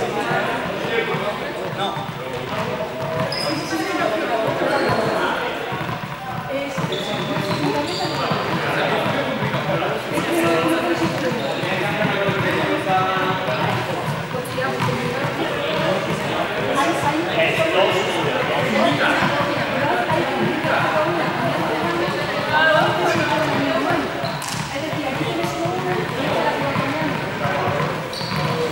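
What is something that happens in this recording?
Several young people talk and call out in a large echoing hall.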